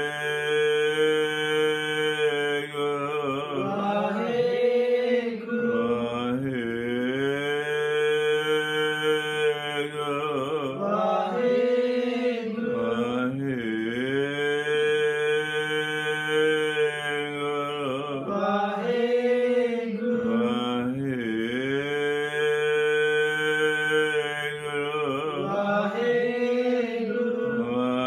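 An elderly man sings a slow, drawn-out chant close by.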